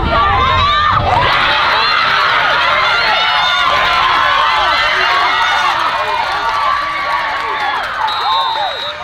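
A crowd of young women cheers and shouts outdoors.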